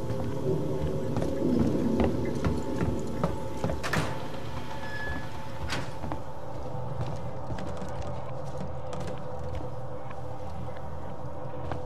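Fluorescent lights hum steadily.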